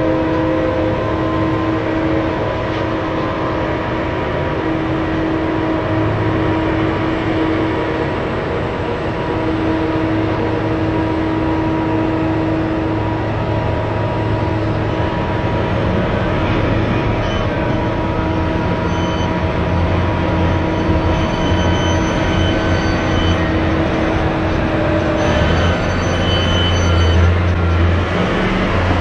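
A heavy dump truck's diesel engine rumbles loudly as the truck drives past.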